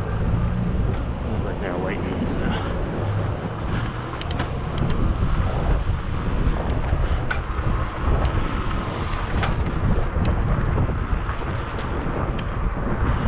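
Wind buffets outdoors with a steady rumble.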